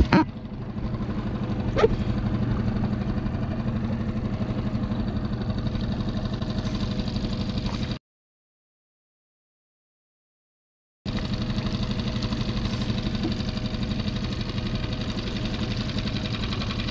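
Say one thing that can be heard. Wind blows across open water.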